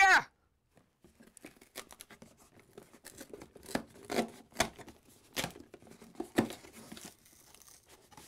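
Fingers tap and slide on a cardboard box.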